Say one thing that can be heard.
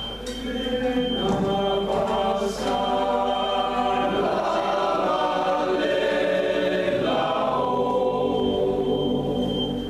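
A choir of older men sings together in harmony.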